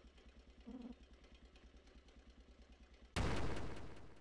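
Chiptune video game music plays softly.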